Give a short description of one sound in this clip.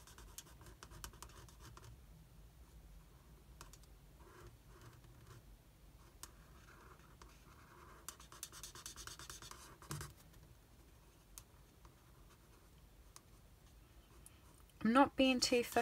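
A felt-tip marker scratches softly on paper.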